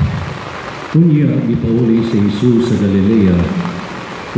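A man chants through loudspeakers, echoing across a wide open space.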